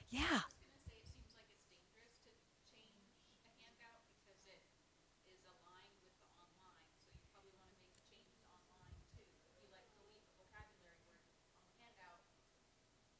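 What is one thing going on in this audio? A young woman speaks calmly to an audience, heard through a microphone.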